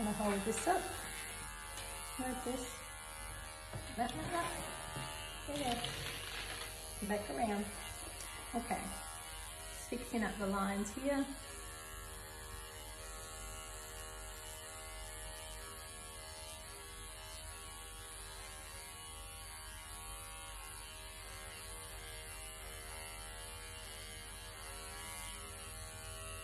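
Electric clippers buzz steadily.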